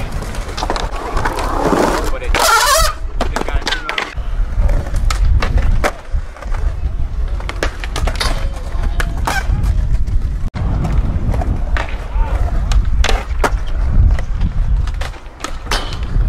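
Skateboard wheels roll and rumble on concrete.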